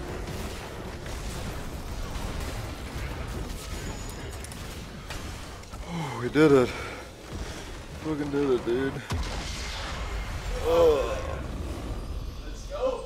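Game battle effects crash and blast.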